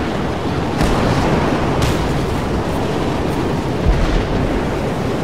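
A car crashes and thumps against rocks.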